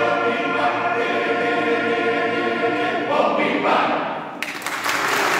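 A men's choir sings in close harmony in a large echoing hall.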